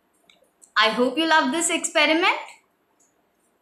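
A young woman speaks brightly and close by.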